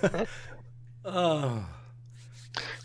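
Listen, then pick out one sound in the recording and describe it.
A middle-aged man laughs over an online call.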